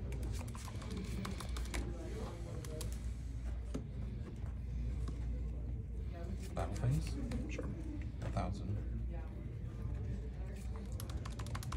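Calculator buttons click under a finger.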